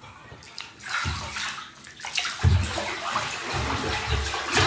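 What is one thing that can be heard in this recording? A body thrashes heavily in the water, churning it loudly.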